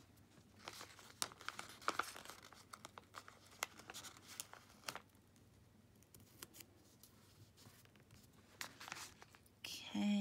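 A thin plastic sticker sheet crinkles in someone's hands.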